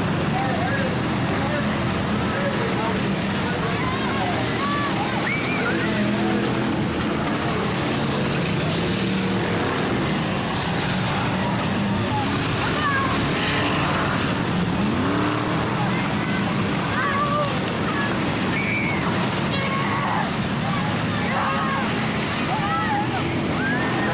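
A crowd of spectators chatters and shouts nearby.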